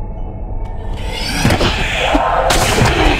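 A magical spell bursts with a crackling whoosh.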